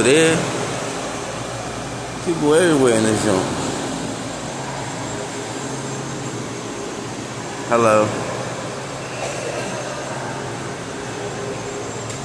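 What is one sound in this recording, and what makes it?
A subway train hums steadily while idling at a platform.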